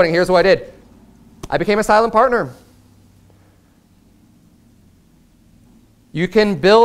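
A man speaks with emphasis through a microphone in a room, pausing between phrases.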